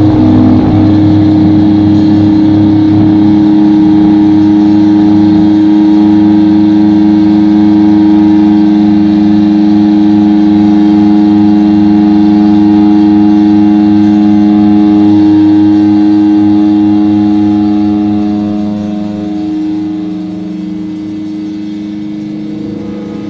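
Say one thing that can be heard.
A loud, distorted electric guitar holds heavy chords through a big hall's sound system, getting quieter toward the end.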